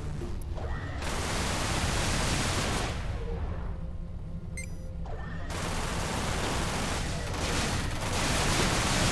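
A spaceship roars with a loud rushing surge as it speeds up.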